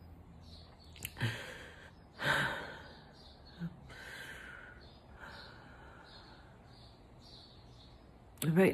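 A middle-aged woman sobs and sniffles close by.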